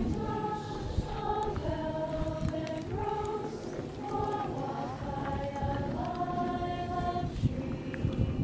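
A crowd sings a slow hymn together outdoors.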